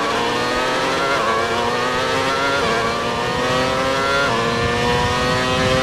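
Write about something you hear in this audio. A racing car engine screams at high revs, rising in pitch and dropping briefly with each gear change.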